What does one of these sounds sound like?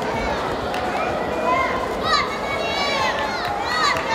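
Spectators cheer loudly as a fighter is thrown to the mat.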